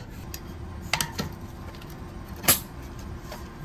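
A metal tool clicks against a bicycle cassette.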